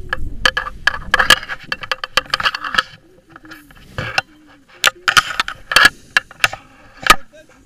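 Harness straps and gear rattle and click.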